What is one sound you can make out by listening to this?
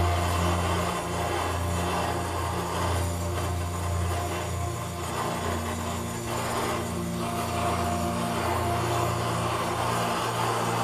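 A gas burner roars steadily inside a small furnace.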